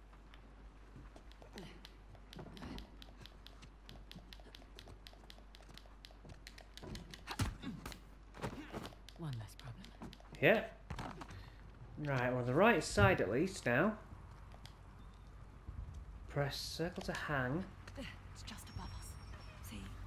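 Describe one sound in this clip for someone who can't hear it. Footsteps patter quickly on stone.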